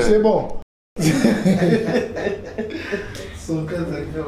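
A man laughs heartily, close by.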